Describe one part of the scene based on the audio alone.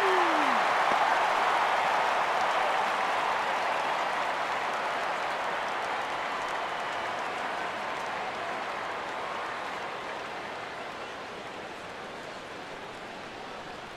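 A large crowd cheers loudly in a stadium and slowly fades.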